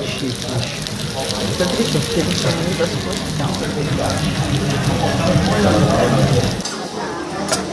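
Food sizzles steadily on a hot pan.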